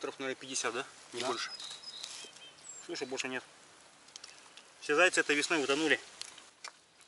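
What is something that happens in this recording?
A second man answers in short remarks.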